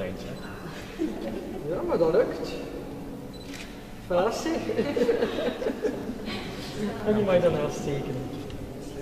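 An elderly woman speaks calmly into a microphone in an echoing hall.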